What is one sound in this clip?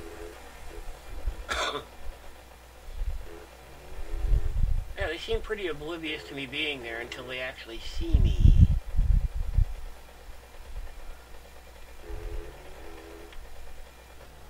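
A motorbike engine hums and revs.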